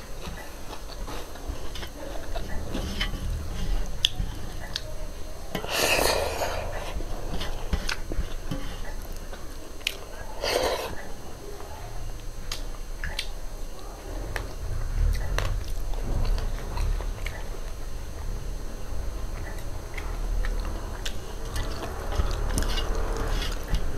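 Fingers rustle and mix rice in a metal bowl.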